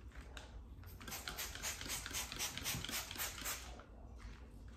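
A spray bottle squirts several times.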